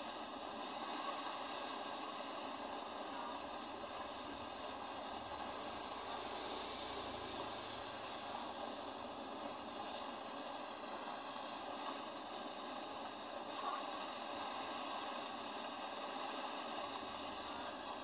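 A gas torch hisses and roars steadily.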